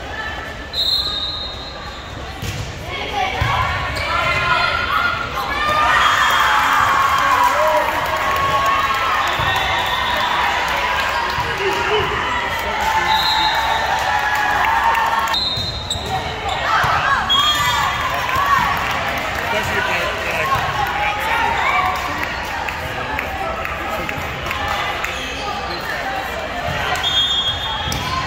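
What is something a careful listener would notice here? Many girls and young women shout and cheer in a large echoing gym.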